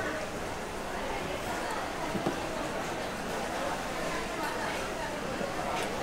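Soup splashes as it is ladled into a bowl.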